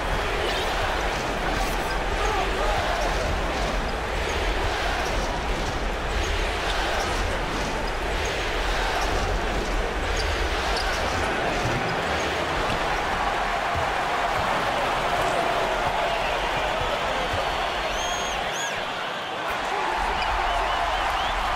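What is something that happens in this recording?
A large crowd roars steadily in an echoing arena.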